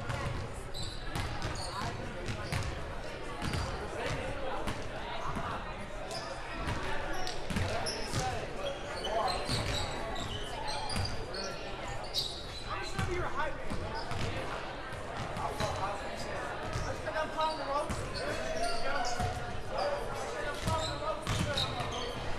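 Basketballs bounce on a hardwood floor, echoing in a large hall.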